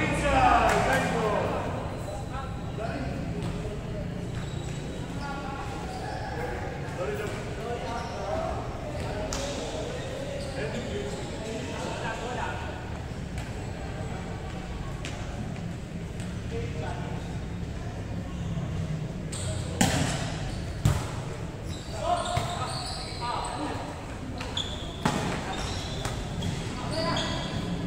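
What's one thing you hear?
Young men call out to each other across a court in a large echoing hall.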